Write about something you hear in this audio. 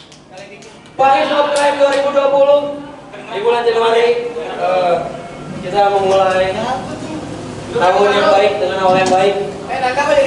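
A band plays loud electric guitars.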